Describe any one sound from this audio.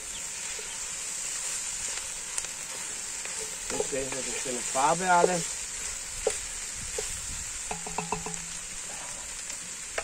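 Food sizzles steadily in a hot pot.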